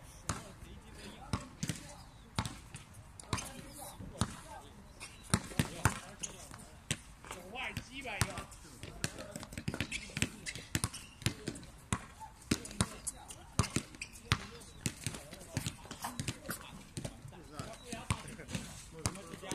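A basketball bounces on an outdoor court.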